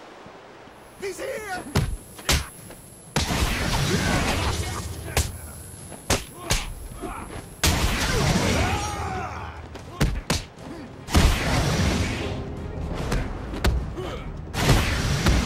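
Punches and kicks land with heavy thuds in a fast brawl.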